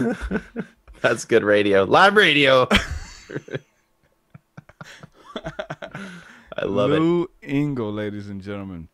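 A second man talks with animation into a microphone.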